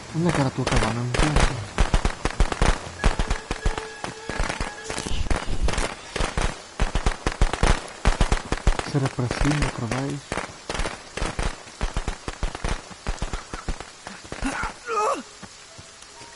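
Footsteps crunch quickly through dry leaves and undergrowth.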